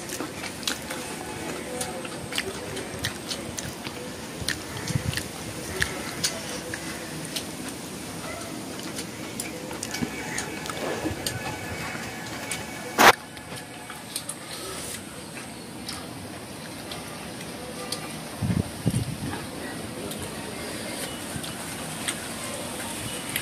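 Fingers squish and mix rice on a plate.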